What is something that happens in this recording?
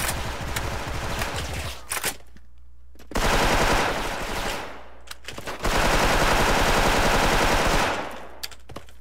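Rifle gunfire rattles in rapid bursts.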